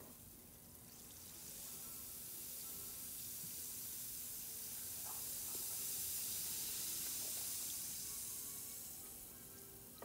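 A bath bomb fizzes and hisses under water.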